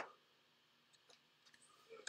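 Paper rustles as a notebook is handled.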